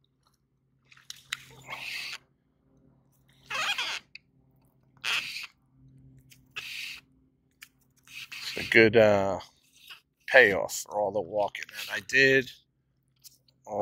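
A dolphin surfaces and exhales with a sharp puff of breath.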